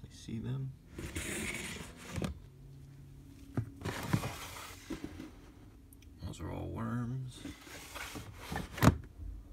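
A plastic drawer scrapes as it slides open and shut.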